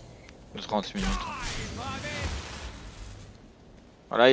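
A crackling electric blast strikes with a loud zap.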